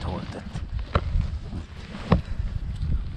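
A donkey's hooves clop on rock.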